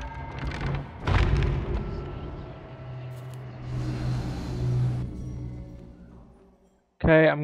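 A deep swirling whoosh roars and slowly fades away.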